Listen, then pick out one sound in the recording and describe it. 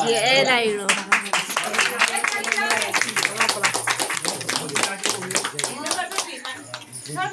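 A group of women claps their hands.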